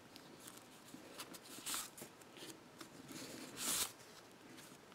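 Paper pages rustle and flip as hands handle a card album.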